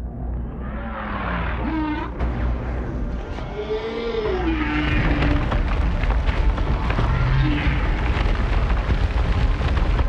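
A laser beam hums and crackles.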